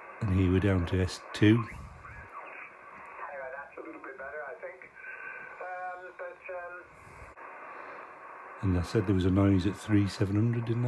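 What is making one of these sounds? A man talks through a crackly radio loudspeaker.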